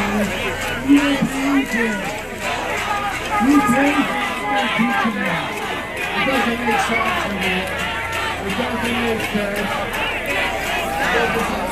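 A crowd of men and women chatters and calls out loudly outdoors.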